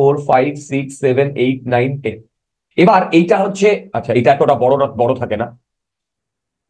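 A man speaks clearly into a close microphone, explaining in a steady lecturing tone.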